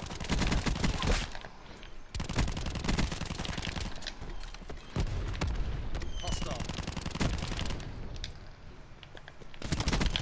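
Rapid machine-gun fire rattles in loud bursts.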